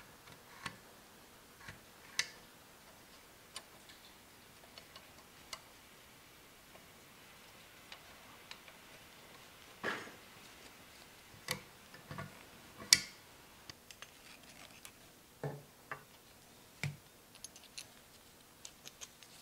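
Metal parts clink and knock as a gearbox is handled.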